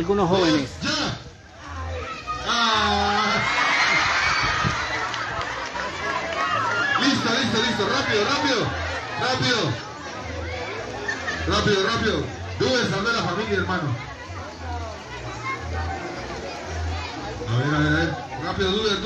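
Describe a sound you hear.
A crowd of men and boys nearby shouts and cheers excitedly outdoors.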